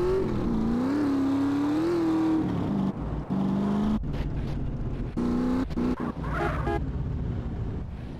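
A buggy engine roars as it drives over dirt.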